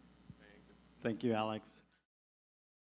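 A second man speaks briefly through a microphone.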